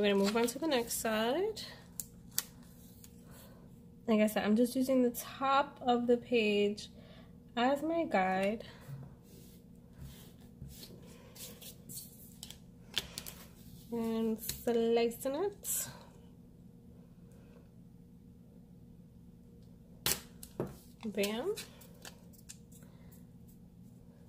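Washi tape is peeled off its roll.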